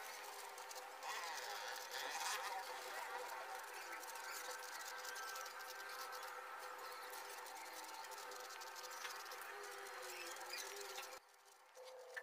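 A marker pen squeaks and scratches across paper.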